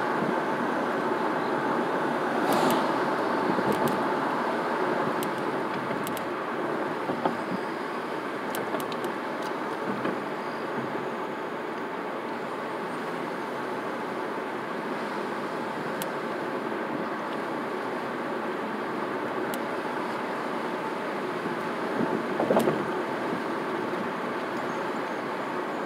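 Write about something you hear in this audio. Tyres hum on asphalt as a car cruises, heard from inside.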